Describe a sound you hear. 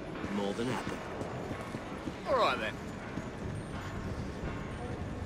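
Footsteps tread slowly on cobblestones.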